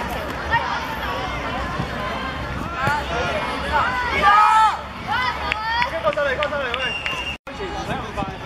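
A group of young boys shouts and cheers together close by.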